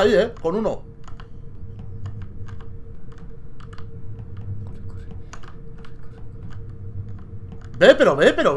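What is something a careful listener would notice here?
Quick light footsteps patter steadily.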